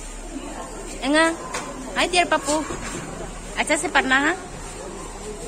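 A young child talks nearby in a high voice.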